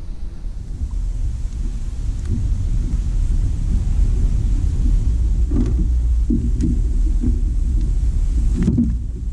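Wind rumbles across an open microphone outdoors.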